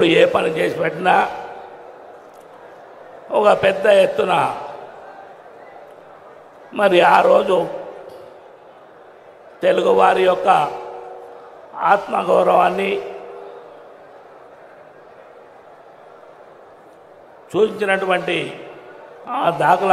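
An older man speaks loudly and forcefully into a microphone, with long pauses, in a large echoing space.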